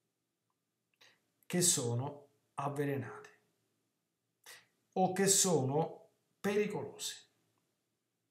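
A middle-aged man speaks calmly into a computer microphone, heard through an online call.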